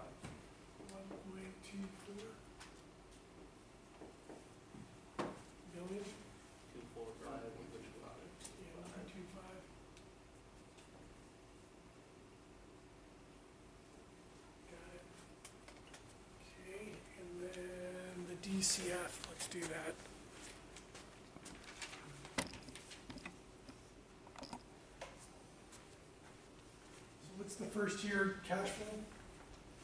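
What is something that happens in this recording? A middle-aged man lectures calmly in a small room, close by.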